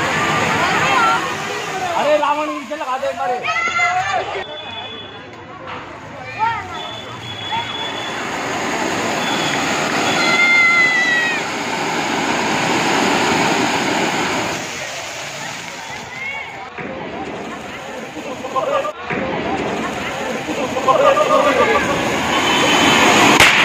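Fireworks fountains hiss and crackle loudly, spraying sparks.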